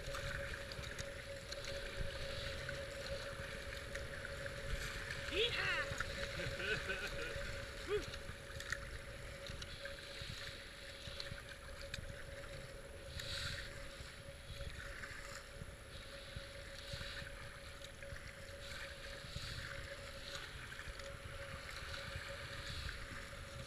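A paddle splashes in the water with each stroke.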